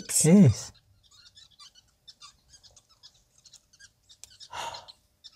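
Small birds chirp faintly.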